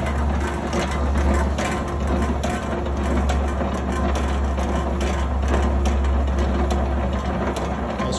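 A meat slicer's carriage slides back and forth with rattling clicks.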